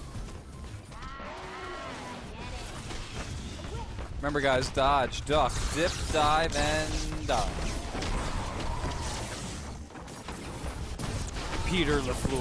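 Gunfire crackles rapidly in a video game.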